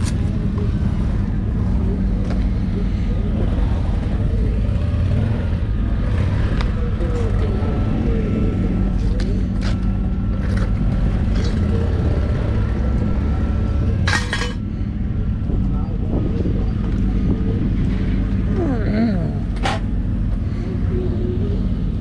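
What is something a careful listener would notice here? Wind blows steadily outdoors, rumbling against the microphone.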